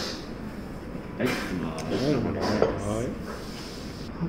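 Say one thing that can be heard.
A glass is set down on a wooden table with a light knock.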